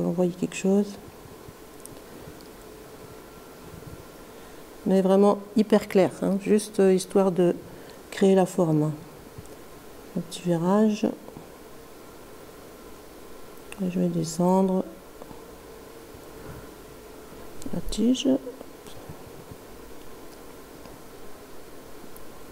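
A brush swishes softly over paper.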